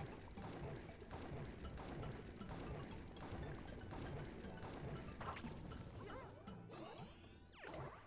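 A cartoon character's feet sizzle and crackle in hot lava.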